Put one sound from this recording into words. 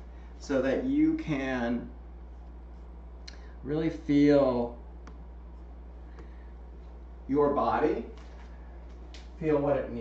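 A man speaks calmly and clearly, close by, in short phrases.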